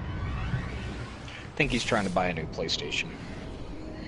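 A deep whoosh surges as a spaceship jumps away.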